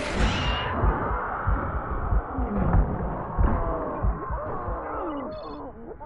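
Gunfire and explosions boom in rapid bursts.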